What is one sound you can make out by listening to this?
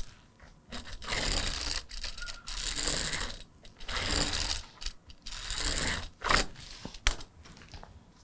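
A felt marker squeaks and scratches across fabric in short strokes.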